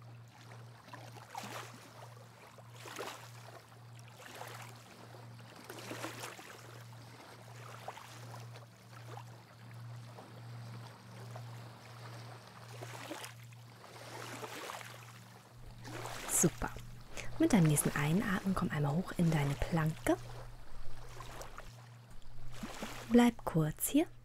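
Small waves lap gently against a shore.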